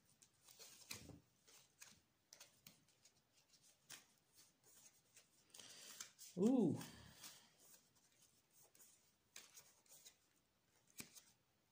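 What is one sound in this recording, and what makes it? Playing cards shuffle and slide softly in a pair of hands.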